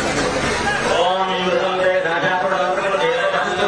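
A man speaks loudly close by.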